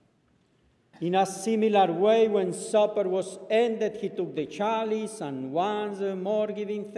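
A man sings slowly through a microphone.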